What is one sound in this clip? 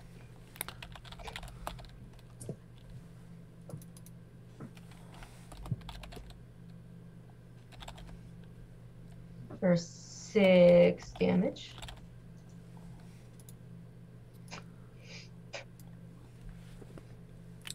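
A woman talks quietly over an online call.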